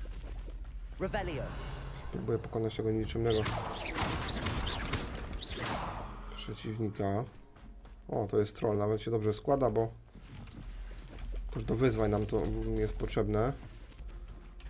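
A man talks with animation into a close microphone.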